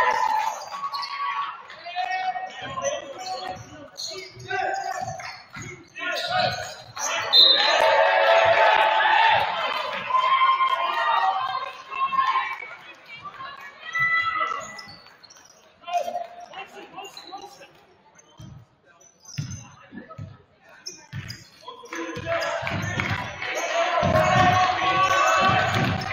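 A basketball bounces on a hard floor in an echoing gym.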